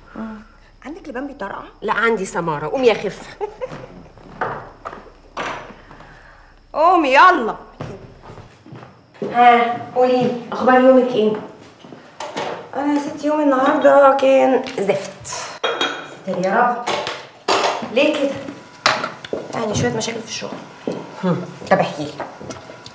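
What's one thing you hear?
A second young woman laughs and answers, close by.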